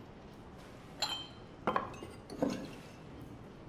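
Glass bottles clink against each other.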